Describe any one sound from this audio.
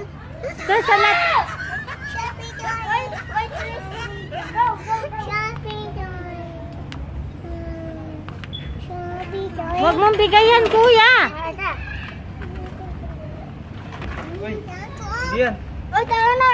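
An older child talks nearby.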